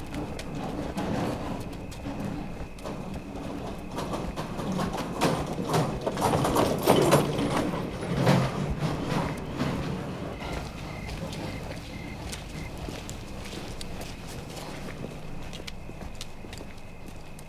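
Footsteps walk along a path.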